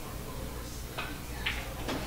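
A cue tip strikes a pool ball with a sharp click.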